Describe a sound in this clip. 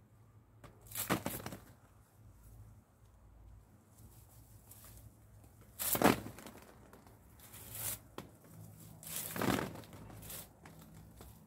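Olives patter onto a plastic sheet.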